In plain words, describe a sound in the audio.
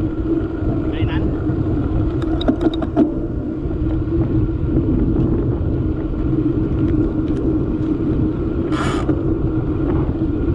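Wind rumbles steadily against the microphone outdoors.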